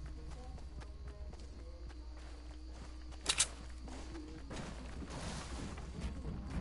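Footsteps patter quickly on wooden boards.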